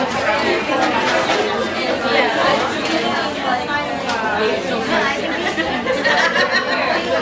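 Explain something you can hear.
Many women chatter and laugh in a busy room.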